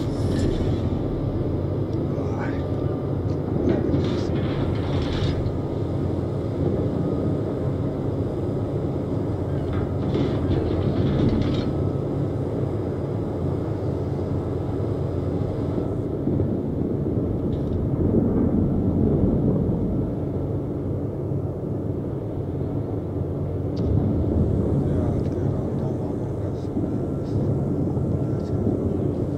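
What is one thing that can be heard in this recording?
A ship's engine rumbles steadily over the sea.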